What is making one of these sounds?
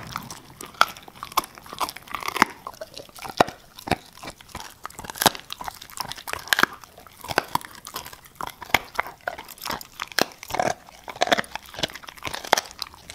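A dog chews and tears at a crinkly plastic bag up close.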